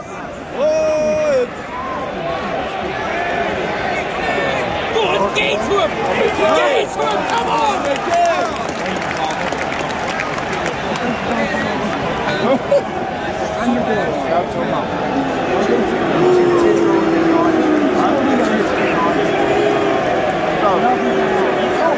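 Men nearby shout and call out loudly.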